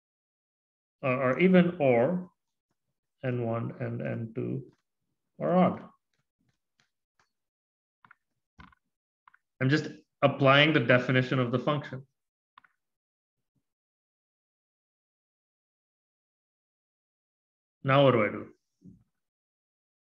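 A man speaks calmly into a microphone, explaining in short bursts with pauses.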